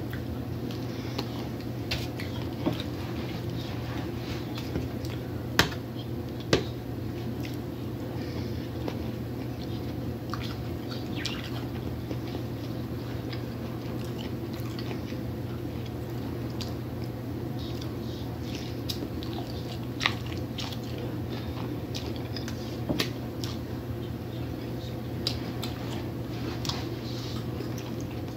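A woman chews food wetly and close to a microphone.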